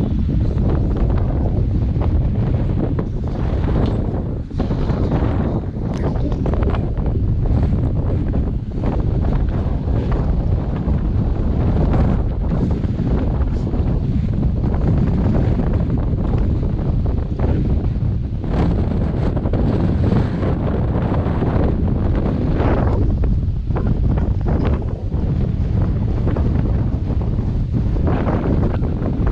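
Wind buffets the microphone steadily outdoors.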